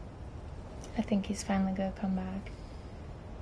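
A young woman speaks briefly and casually into a close microphone.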